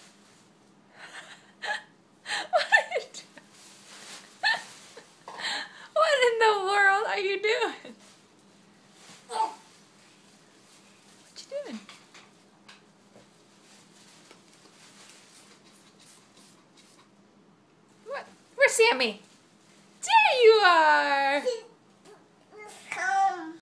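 A toddler squeals and babbles close by.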